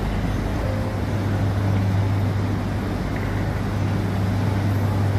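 A train rolls past with a steady low rumble.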